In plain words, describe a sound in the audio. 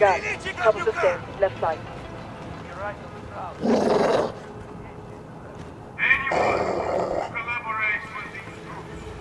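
A young man speaks into a microphone close by.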